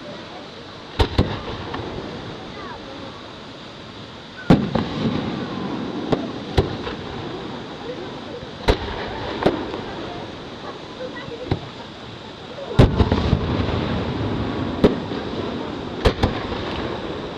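Fireworks boom and bang loudly, one after another.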